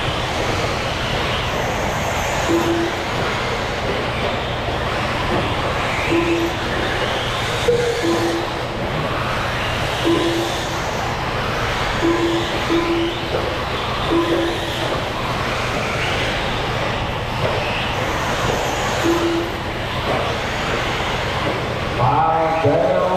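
Tyres of small race cars scrabble on packed dirt.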